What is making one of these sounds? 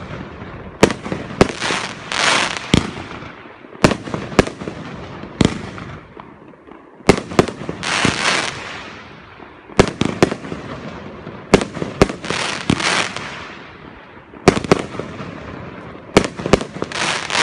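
Fireworks burst with sharp, loud bangs, again and again.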